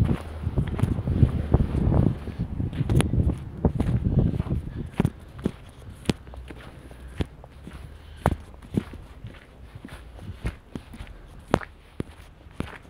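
Footsteps crunch and scrape on icy snow at a steady walking pace.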